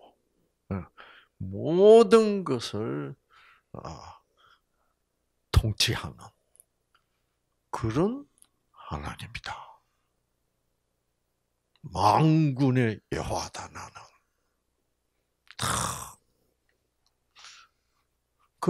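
An elderly man speaks with animation into a microphone, with long pauses.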